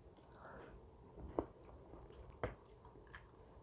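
A spoon scrapes and clinks against a bowl of shaved ice.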